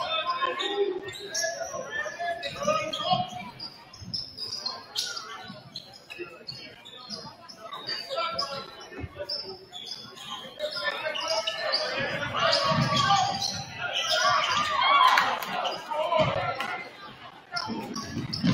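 A crowd murmurs and cheers in the stands.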